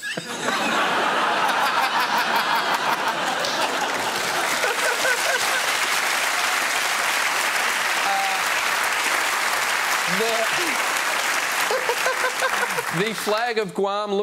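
A large studio audience laughs and applauds.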